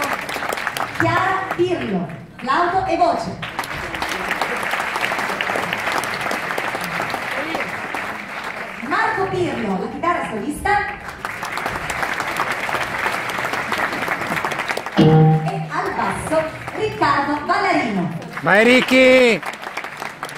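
A young girl sings through loudspeakers in a large hall.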